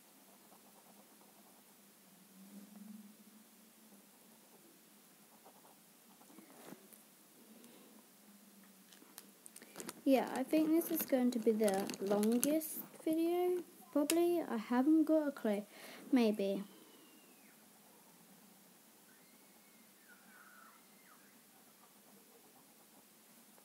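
A marker scratches on paper.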